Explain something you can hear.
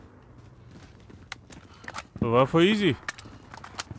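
A rifle magazine clicks out and snaps back in.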